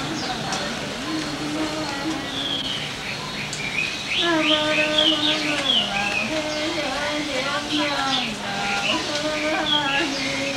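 A man chants slowly in a steady, low voice.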